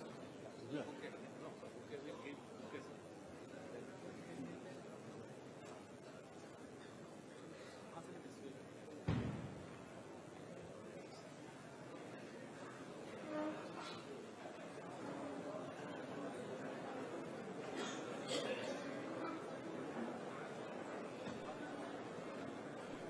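A crowd murmurs and chatters in a busy room.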